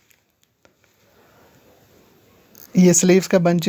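Cloth rustles softly as it is lifted.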